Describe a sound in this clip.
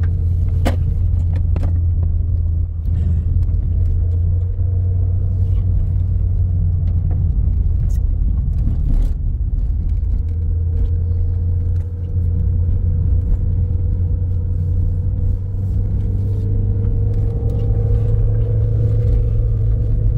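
A car engine hums steadily as the car drives along a rough road.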